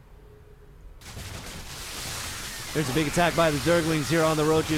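Game weapons fire and explode in a chaotic battle.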